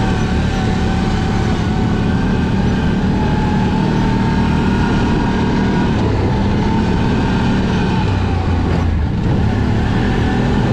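An engine drones steadily up close as a vehicle drives along.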